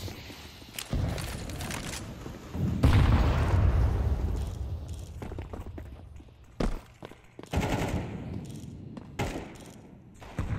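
A rifle fires loud, booming shots.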